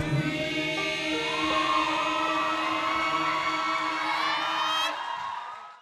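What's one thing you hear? A young woman sings through a microphone with a sustained voice.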